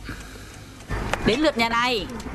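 A woman speaks loudly and with animation.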